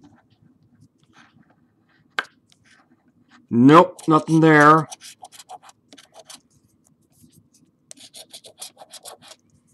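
A coin scratches rapidly across a stiff paper card.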